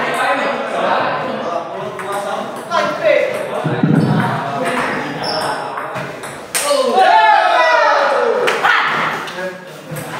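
A table tennis ball clicks back and forth on a table and paddles.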